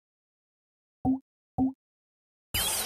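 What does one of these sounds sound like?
Two short soft pops sound.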